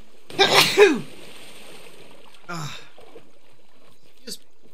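Someone swims through water with soft splashing.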